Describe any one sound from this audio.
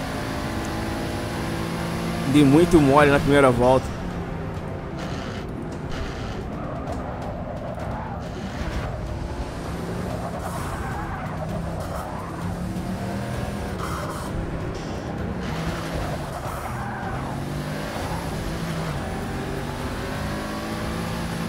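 A powerful car engine roars, revving up and dropping with each gear change.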